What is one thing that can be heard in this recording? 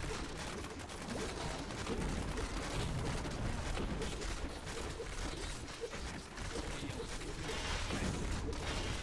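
Blades and blows strike monsters with sharp hits.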